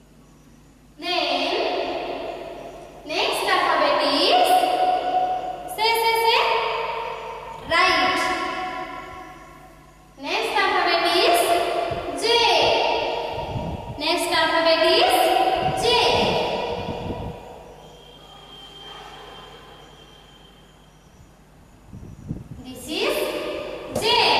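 A young woman sings a nursery rhyme in a bright voice in an echoing room.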